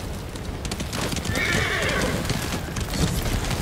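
Water splashes under a horse's hooves.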